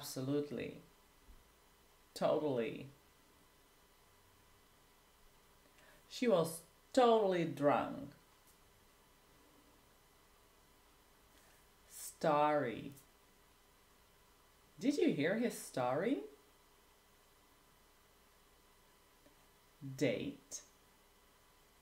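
A woman speaks clearly and calmly into a close microphone, in short phrases with pauses.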